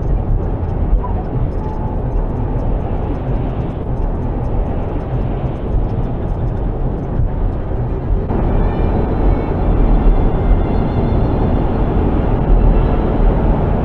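A lorry drives close alongside with a deep rumble.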